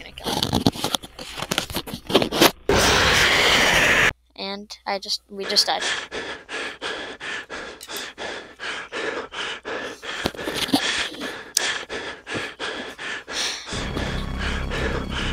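A young boy talks and gasps close to a microphone.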